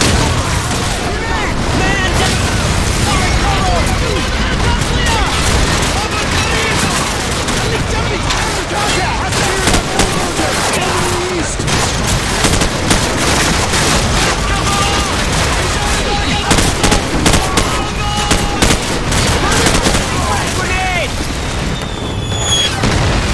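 Rapid gunfire cracks in sharp bursts.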